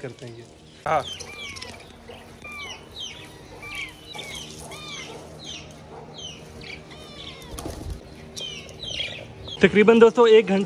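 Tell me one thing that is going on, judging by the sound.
Birds chirp and tweet in cages.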